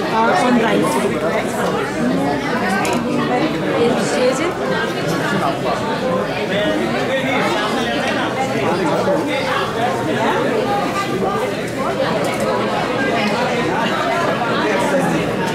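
Several women chat nearby in a busy, crowded room.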